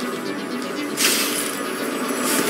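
A grappling hook fires and whooshes through the air.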